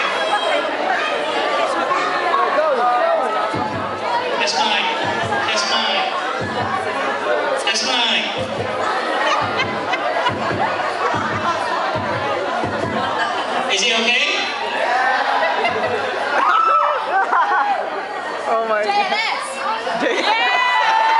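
A crowd of guests chatters and cheers.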